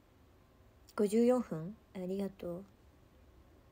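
A young woman speaks briefly and softly close to a microphone.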